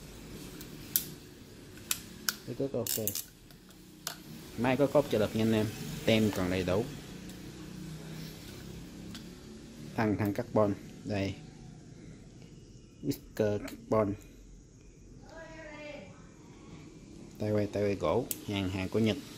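A plastic fishing reel clicks and rattles as hands handle it.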